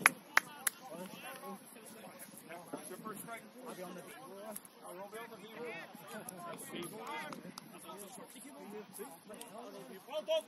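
Men talk and call out to each other nearby, outdoors on an open field.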